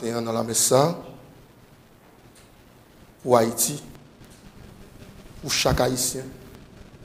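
A man sings a chant slowly through a microphone, in a reverberant room.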